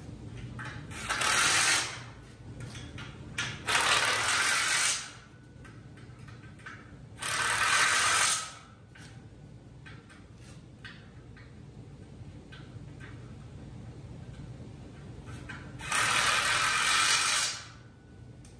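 A power tool whirs in short bursts.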